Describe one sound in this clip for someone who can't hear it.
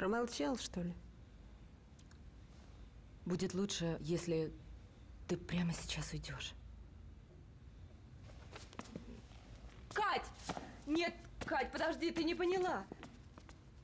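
Two young women talk in turn, close by.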